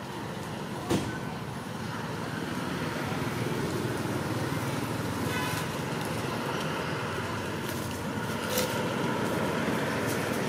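Leaves and branches rustle as monkeys climb in a tree.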